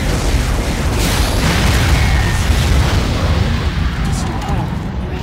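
A loud explosion booms and rumbles away.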